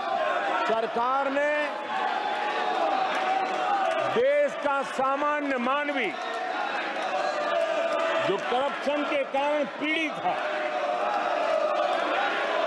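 An elderly man speaks forcefully through a microphone.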